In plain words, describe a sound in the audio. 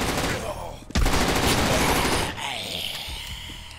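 Gunshots crack out in quick succession.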